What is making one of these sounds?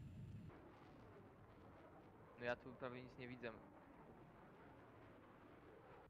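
A jet fighter roars past low overhead.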